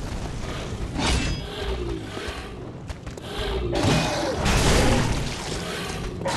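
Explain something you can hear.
A blade swishes and strikes.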